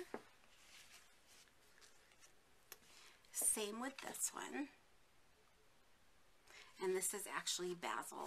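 A paper card rustles softly as it is handled.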